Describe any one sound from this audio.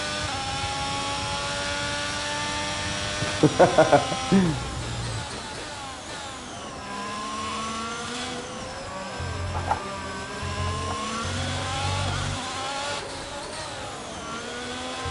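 A racing car engine roars at high revs and drops in pitch as the car slows.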